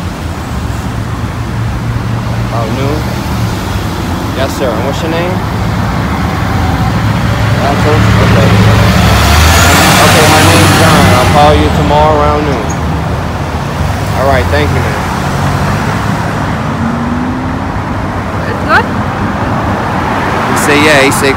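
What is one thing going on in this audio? Traffic rumbles past outdoors.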